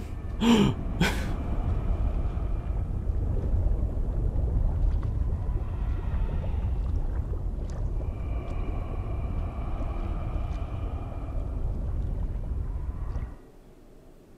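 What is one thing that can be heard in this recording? A deep rumble sounds underwater as a huge sea creature swims.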